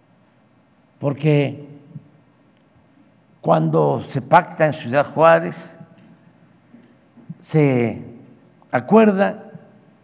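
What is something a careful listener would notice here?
An elderly man speaks slowly and calmly into a microphone, with pauses between phrases.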